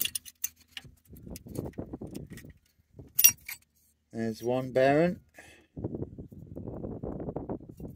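Metal parts clink and scrape against each other.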